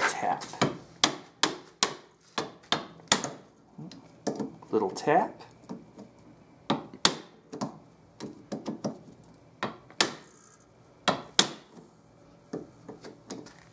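A hammer strikes a metal punch in sharp, repeated blows.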